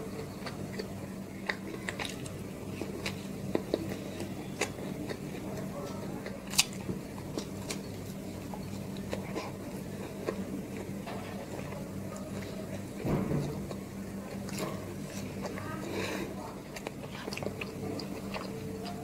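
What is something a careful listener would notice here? A woman chews and bites flatbread close to a microphone.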